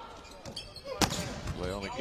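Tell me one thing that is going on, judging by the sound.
A volleyball is struck hard with a loud smack.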